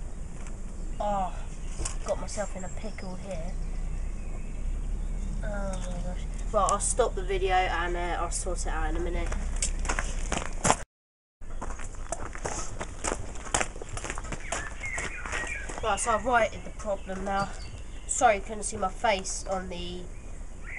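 A boy talks calmly nearby.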